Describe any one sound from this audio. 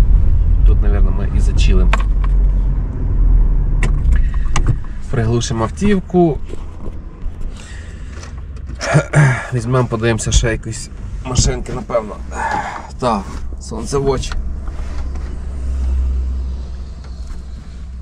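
A car engine hums low while driving.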